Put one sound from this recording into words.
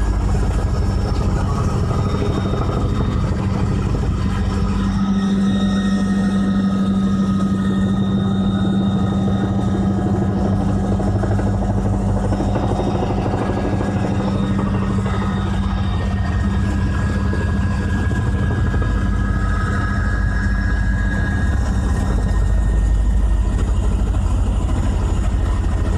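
An aircraft engine drones steadily and loudly close by.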